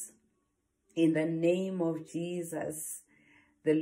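A woman speaks calmly and warmly into a nearby microphone.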